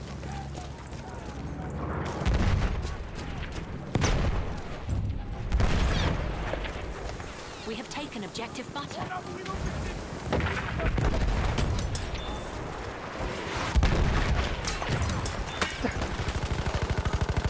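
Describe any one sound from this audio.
Gunfire and explosions crack and boom in a battle.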